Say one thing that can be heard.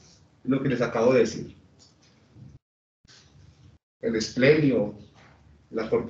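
A man lectures calmly through a microphone, pausing between phrases.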